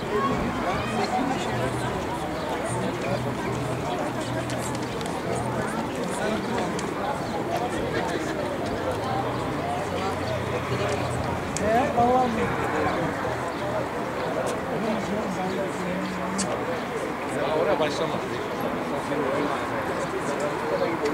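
People talk and call out in the distance outdoors.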